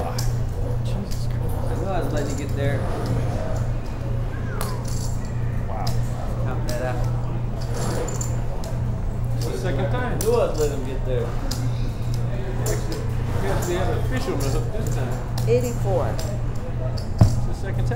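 Men talk casually around a table.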